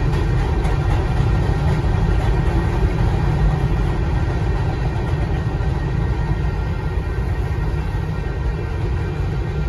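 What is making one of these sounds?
A long freight train rumbles and clatters past nearby.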